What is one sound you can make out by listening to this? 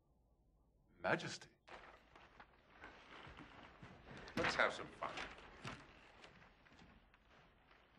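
An elderly man speaks with animation in an echoing hall.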